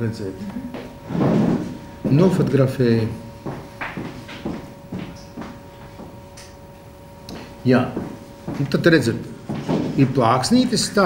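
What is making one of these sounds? An older man speaks calmly into a close microphone.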